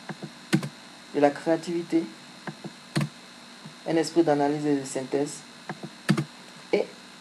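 A computer mouse clicks sharply a few times.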